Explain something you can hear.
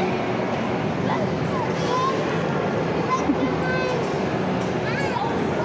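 Young girls talk and squeal in high voices nearby.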